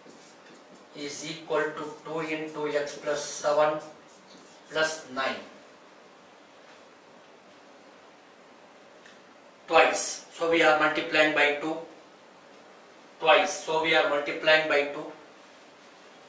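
A middle-aged man speaks calmly into a close microphone, explaining in bursts.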